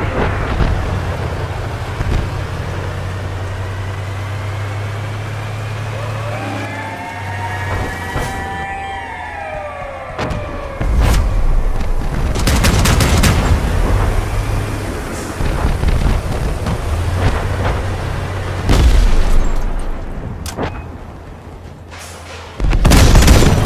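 A heavy vehicle engine rumbles steadily.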